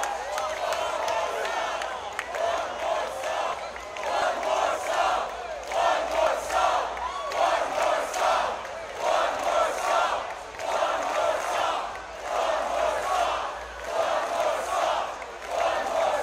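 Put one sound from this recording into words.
A large crowd cheers and screams in a big echoing space.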